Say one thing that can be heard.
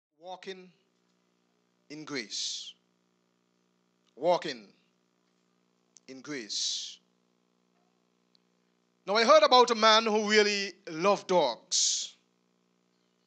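A man speaks slowly and deliberately into a microphone, in short phrases with pauses.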